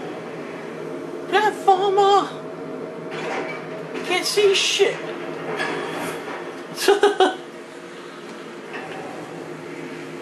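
A floating metal canister crashes against a wall with a loud clang.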